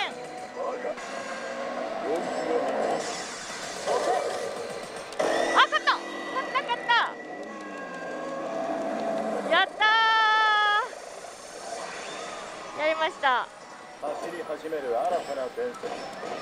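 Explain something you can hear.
A slot machine plays upbeat music and electronic sound effects.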